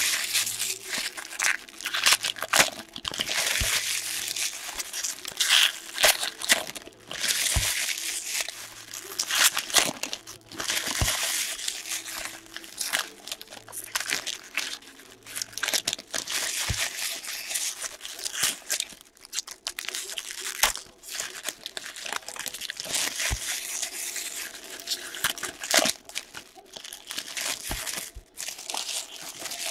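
Hands crinkle and tear open foil card wrappers.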